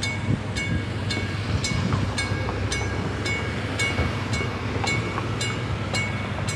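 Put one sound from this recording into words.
A car drives slowly past.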